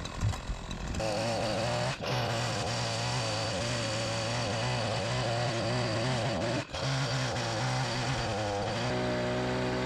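A chainsaw cuts through a thick log.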